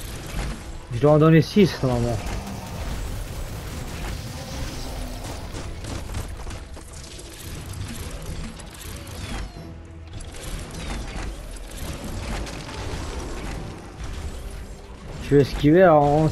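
A giant beast roars loudly.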